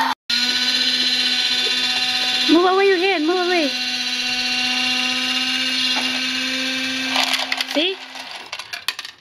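A toy truck plays a steady electronic tune.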